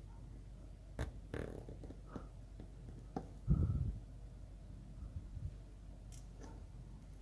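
A screwdriver turns a small screw with faint scraping clicks.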